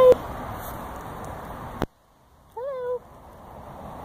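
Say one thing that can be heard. A goat bleats close by.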